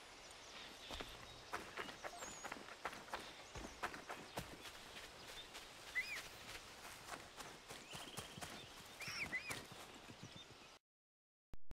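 Footsteps patter quickly over grass and dirt.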